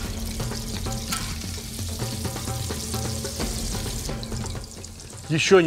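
Onions sizzle in a hot pan.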